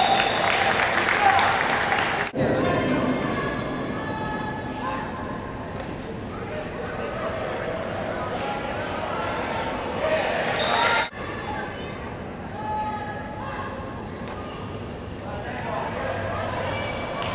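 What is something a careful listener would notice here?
Young players and adults shout and call out across an open field.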